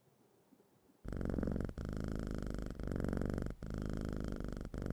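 A recording of a cat purring plays with a low, rhythmic rumble.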